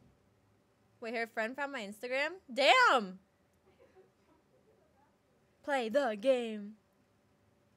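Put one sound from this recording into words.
A young woman speaks casually and expressively into a close microphone.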